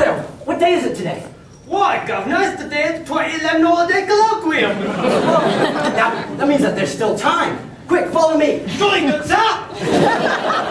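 A man replies with animation in a room that echoes.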